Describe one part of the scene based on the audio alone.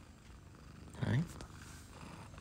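A cat meows briefly.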